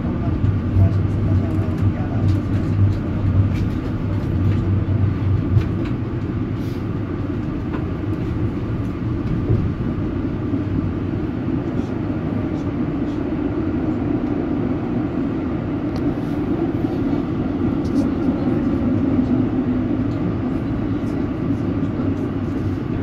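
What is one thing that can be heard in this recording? A tram rumbles steadily along its tracks.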